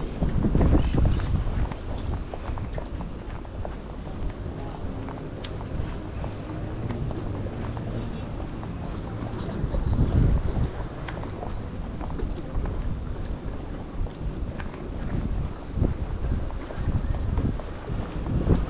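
Wind gusts and buffets outdoors.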